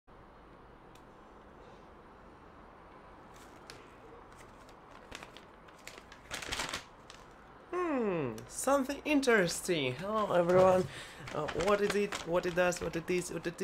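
Paper rustles as a map is handled and unfolded.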